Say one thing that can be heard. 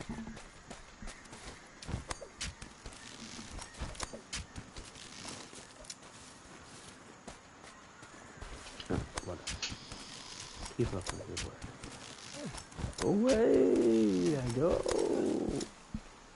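Leafy vines rustle and creak as someone climbs through them.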